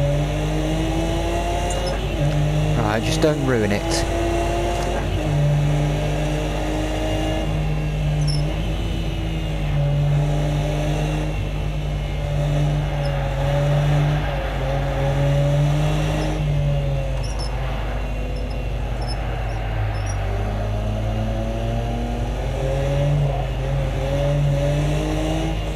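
A racing car engine drones and revs up and down as gears shift.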